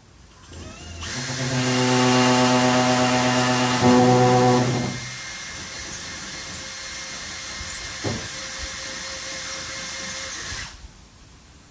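A cordless drill whirs loudly and steadily as it drives a screw.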